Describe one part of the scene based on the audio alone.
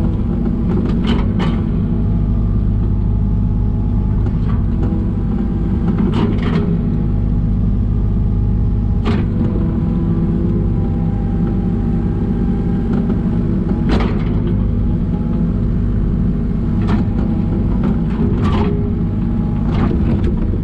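A digger bucket scrapes and clanks against soil and stones.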